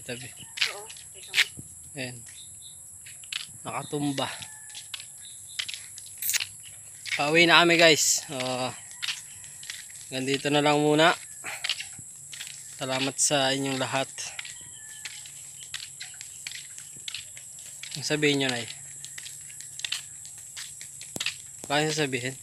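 A young man talks close to the microphone, calmly and in bursts.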